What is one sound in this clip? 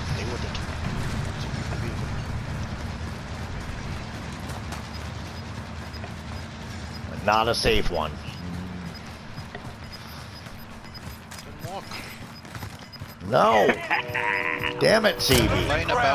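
Footsteps run over grass and tarmac.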